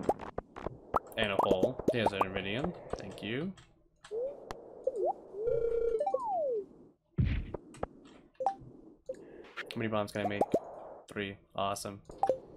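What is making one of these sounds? Game sound effects chime and pop as items are picked up.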